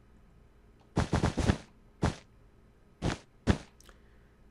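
Blocks are placed with short, soft thuds.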